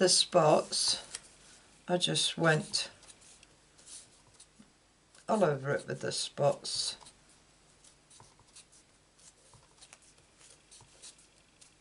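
A small rubber stamp dabs on an ink pad.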